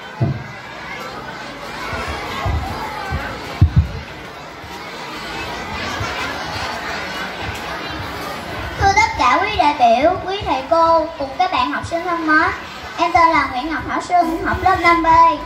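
A crowd of children chatters outdoors.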